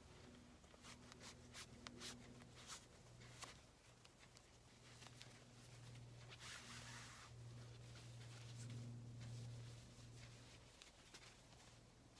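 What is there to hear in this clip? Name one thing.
Fabric rustles and swishes as a tie is knotted and pulled.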